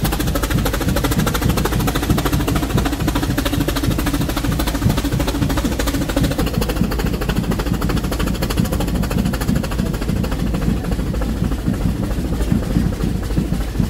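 A steam locomotive chuffs rhythmically as it pushes the train uphill.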